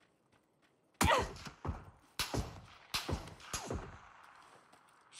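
Rifle shots crack loudly in quick succession.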